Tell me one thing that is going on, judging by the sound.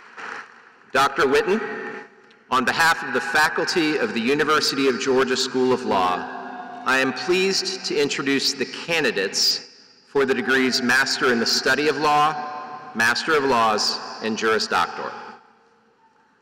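A man speaks calmly through a microphone and loudspeakers in a big echoing hall.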